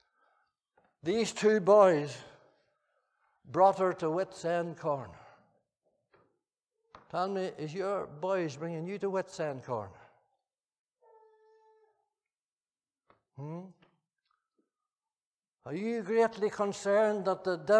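An elderly man speaks slowly and earnestly through a microphone in a large, reverberant hall, pausing between phrases.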